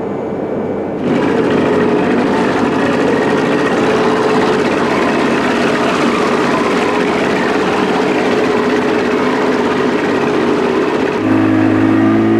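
An outboard motor drones loudly.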